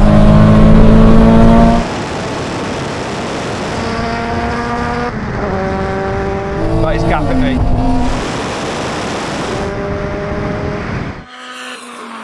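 A car engine roars loudly as it revs and accelerates.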